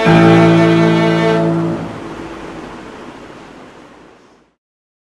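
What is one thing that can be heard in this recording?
A violin plays a long sustained chord that rings on in a room and fades away.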